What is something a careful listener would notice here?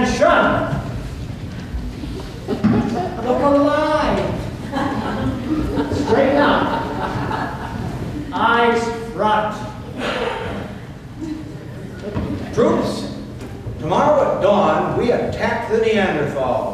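A group of men and women sings together on a stage, heard from the audience in a large hall.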